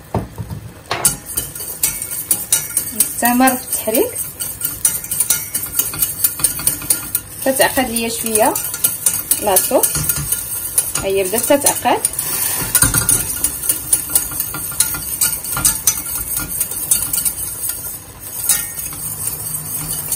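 A metal whisk clatters and scrapes quickly against a metal pot.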